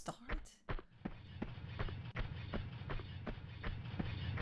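Footsteps run steadily across a hard floor.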